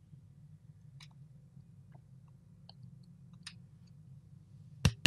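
A computer mouse clicks several times, close by.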